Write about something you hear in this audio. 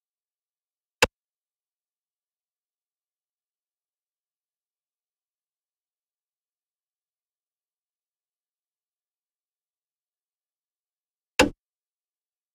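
A short interface click sounds.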